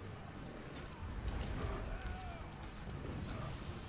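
A burst of flame roars.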